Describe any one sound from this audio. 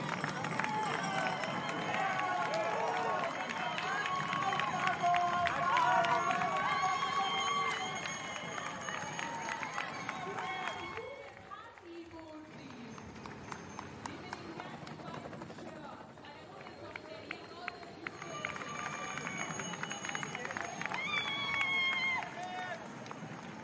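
A crowd of spectators cheers loudly outdoors.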